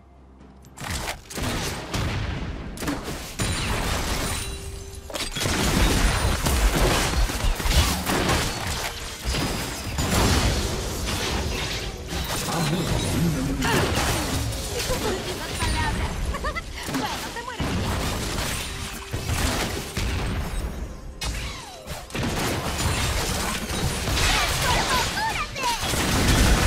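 Game spell effects crackle and blast during a fight.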